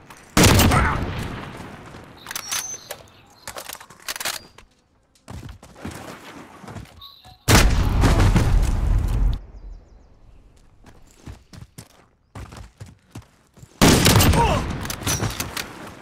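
A sniper rifle fires loud booming shots that echo away.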